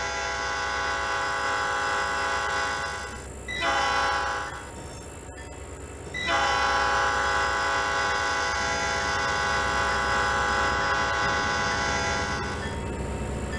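A train horn blows.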